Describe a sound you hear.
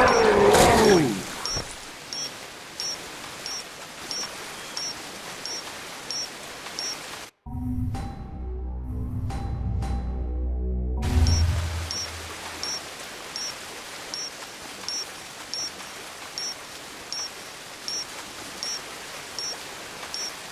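Footsteps splash steadily through shallow water.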